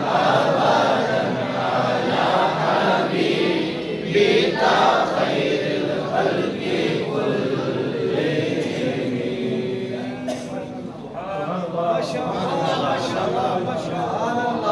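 A man chants melodically into a microphone, heard through loudspeakers in an echoing hall.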